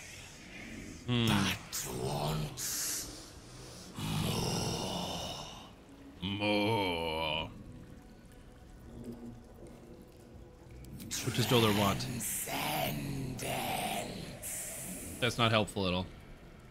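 A young man talks into a close microphone in a relaxed way.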